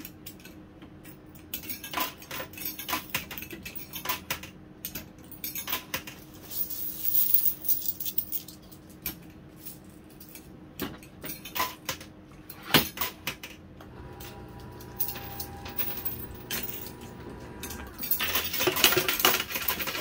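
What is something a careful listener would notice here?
Coins and tokens clink and clatter inside a coin pusher machine.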